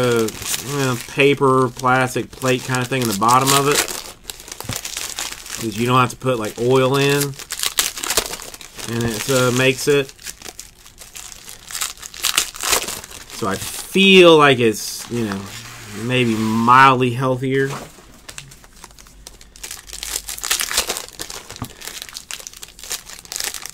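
Foil wrappers crinkle and tear open close by.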